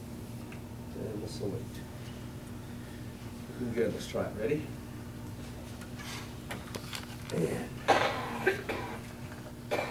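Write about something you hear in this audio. An older man speaks calmly to a group in a room with some echo.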